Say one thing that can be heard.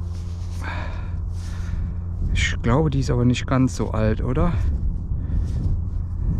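Gloved hands rub and crumble dry soil off a small object.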